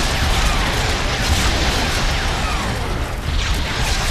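An electric energy beam crackles and roars.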